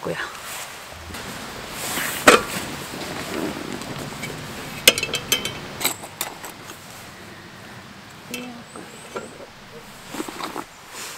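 Objects clatter and rustle as a bag is unpacked.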